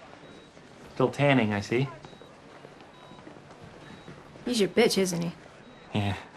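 A young man speaks nearby.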